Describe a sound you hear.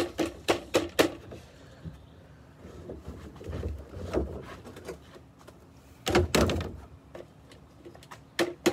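A plastic canister knocks and taps against the rim of a plastic bin.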